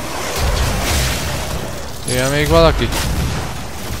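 An explosion bursts with a deep roar.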